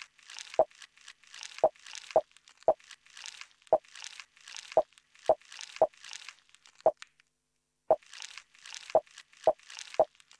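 Electronic drum beats play in a steady rhythm, briefly pausing near the end.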